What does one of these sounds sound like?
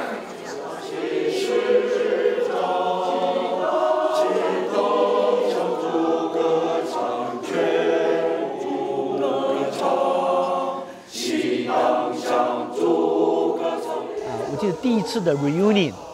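A mixed choir of men and women sings together in full harmony.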